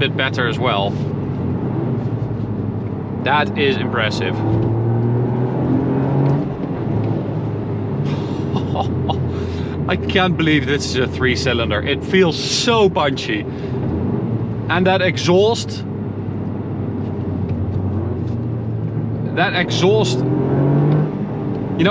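A car engine hums steadily inside the cabin and rises in pitch as it speeds up.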